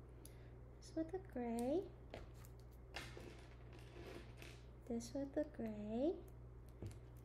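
Small plastic pieces click softly as they are handled.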